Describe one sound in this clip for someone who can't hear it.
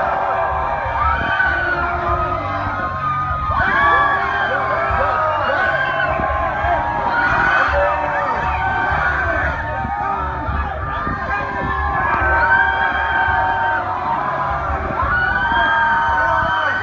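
A young man sings loudly through a microphone.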